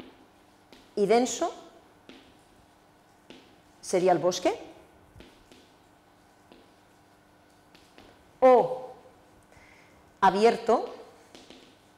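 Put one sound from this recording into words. A woman speaks in short, calm phrases.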